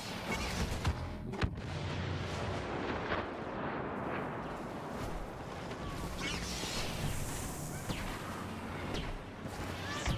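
A lightsaber hums and whooshes as it is swung.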